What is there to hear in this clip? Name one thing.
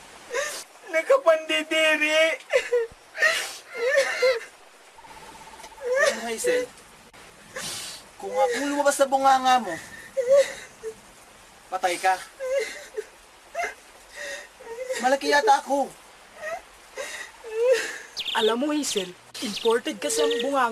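Young men talk calmly to each other nearby.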